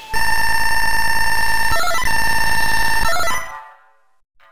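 Electronic beeps tally up a score in a rapid, steady run.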